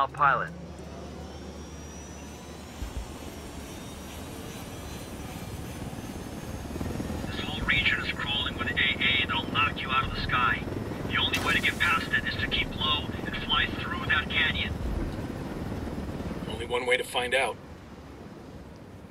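A helicopter's rotor thuds and its engine roars steadily, growing louder as it takes off.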